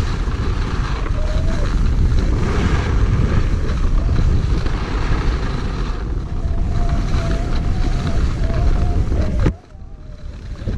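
Skis scrape and hiss steadily over packed snow.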